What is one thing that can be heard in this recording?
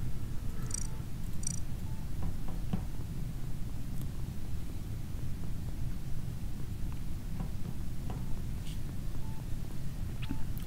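Footsteps patter softly as a small character walks.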